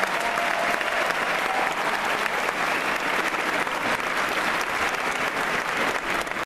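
A large audience applauds and cheers in a big echoing hall.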